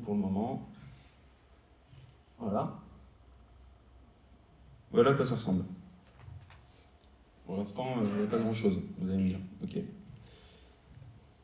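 A man speaks calmly into a microphone in a large echoing hall, pausing often.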